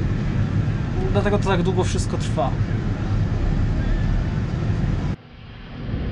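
A combine harvester roars close by.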